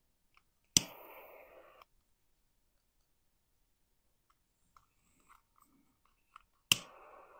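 A torch lighter clicks on and hisses with a jet of flame.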